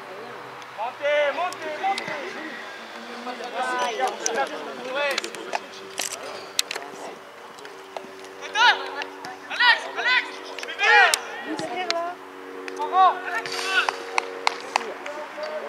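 Young boys shout to each other across an open field.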